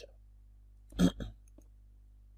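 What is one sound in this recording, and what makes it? A wooden block breaks apart with a short crunch.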